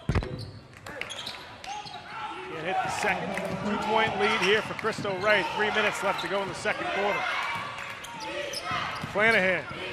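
A crowd cheers loudly in an echoing gym.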